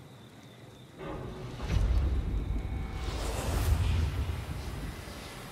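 A low rumbling whoosh swells up and fades.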